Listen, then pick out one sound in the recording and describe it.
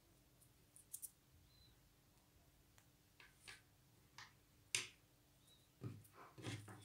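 Paper pieces rustle and tap softly as fingers handle them.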